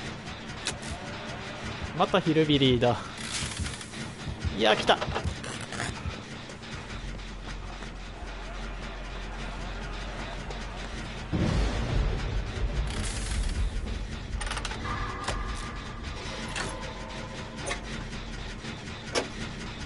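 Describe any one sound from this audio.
Metal parts click and clatter as an engine is worked on.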